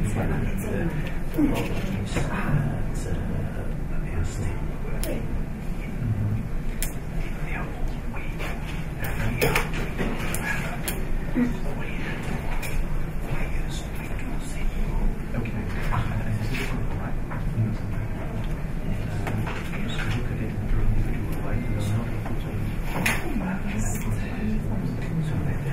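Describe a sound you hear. Several men and women talk at once in a group discussion.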